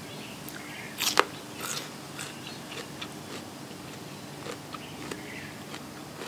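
Prawn shells crack and crunch as hands peel them.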